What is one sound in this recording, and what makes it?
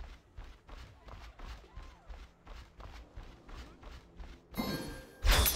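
Footsteps thud quickly and evenly.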